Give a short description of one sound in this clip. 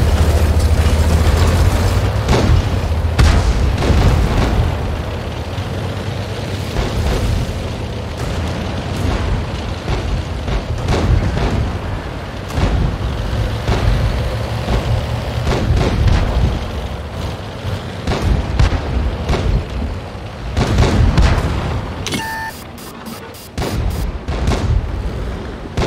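A tank engine rumbles deeply and steadily.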